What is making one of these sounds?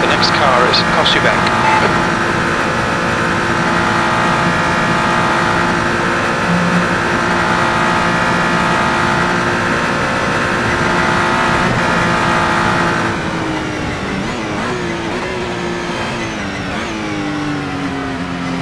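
A race car engine roars at high revs, holding steady and then dropping in pitch as the car brakes and downshifts.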